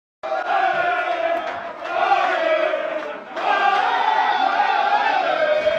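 A group of men sing loudly together in an echoing room.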